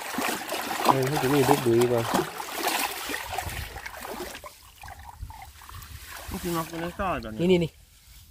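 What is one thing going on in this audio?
Water sloshes and drips from a net.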